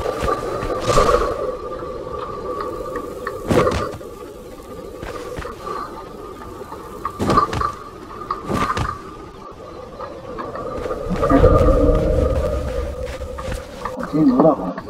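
A pickaxe strikes rock again and again.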